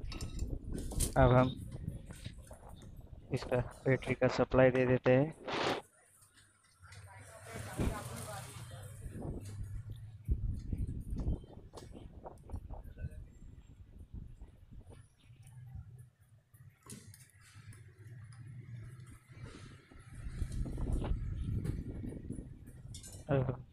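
Small metal parts and wires click and rustle as they are handled close by.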